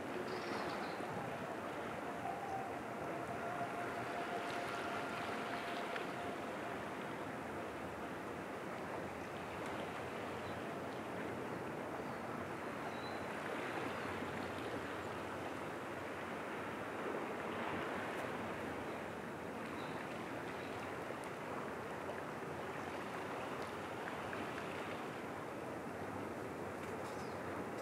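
Gentle waves lap softly against rocks on the shore.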